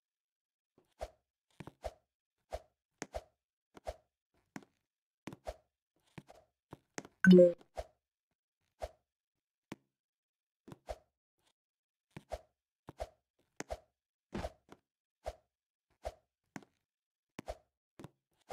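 Soft bouncing thumps repeat at a steady, quick pace.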